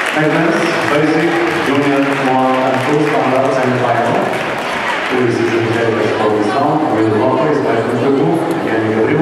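Upbeat dance music plays over loudspeakers in a large echoing hall.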